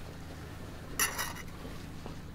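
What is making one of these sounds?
Crispy roasted meat crackles as hands tear it apart.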